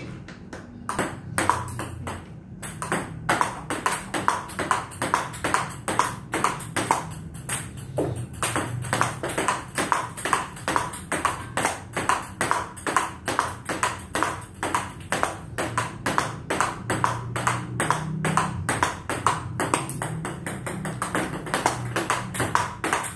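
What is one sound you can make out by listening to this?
A table tennis ball clicks rapidly back and forth off paddles and the table.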